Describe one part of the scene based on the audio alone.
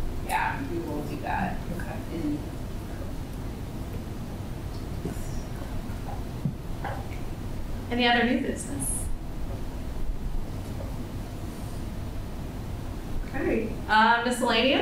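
An adult speaks calmly through a microphone in a large room, in short bursts.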